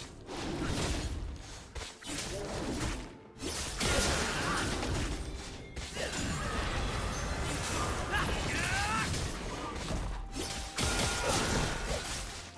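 Fantasy game spells whoosh and clash during a fight.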